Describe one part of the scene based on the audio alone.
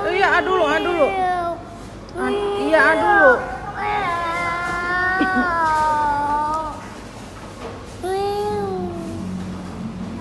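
A woman speaks close by in a bright, sing-song voice.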